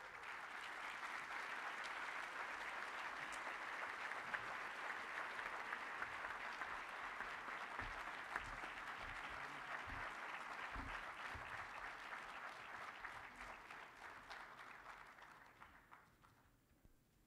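A large audience applauds in a big hall, then the applause fades out.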